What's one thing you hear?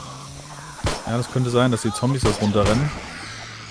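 A pistol fires several sharp, loud shots.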